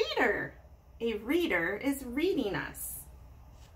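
A woman reads aloud with expression, close to the microphone.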